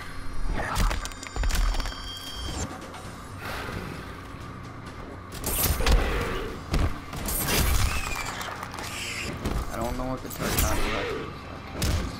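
A monstrous creature hisses and screeches.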